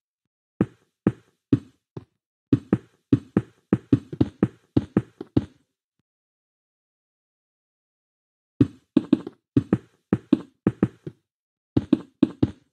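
Stone blocks thud and crunch as they are placed one after another.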